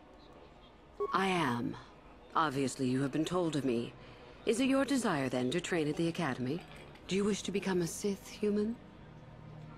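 A woman speaks slowly in a cold, processed voice.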